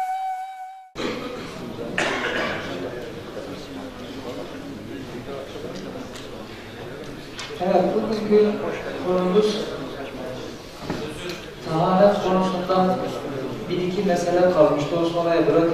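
A middle-aged man speaks calmly through a headset microphone in a room with a slight echo.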